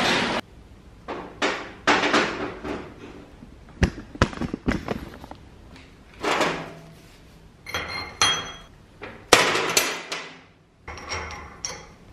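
Metal parts clink and knock against each other.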